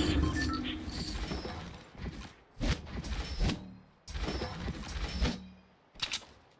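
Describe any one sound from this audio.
Wooden walls snap into place with quick clunks.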